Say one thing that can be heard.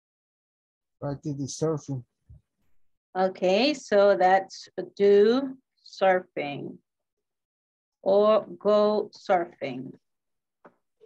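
A woman speaks calmly over an online call, pausing between words.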